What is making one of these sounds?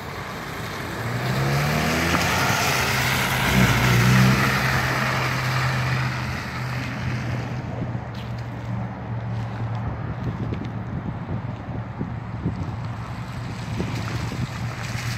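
A car engine revs hard and then idles.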